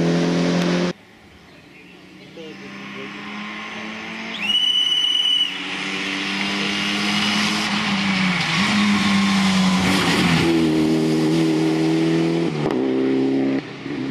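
A rally car engine approaches from a distance, growing louder and revving hard.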